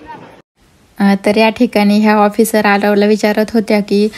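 A woman speaks animatedly and clearly, close by.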